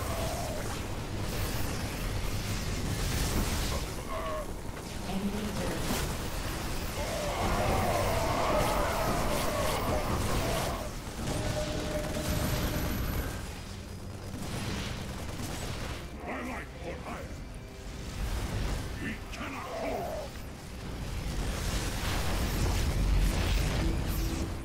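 Laser and gunfire effects crackle and zap in a game battle.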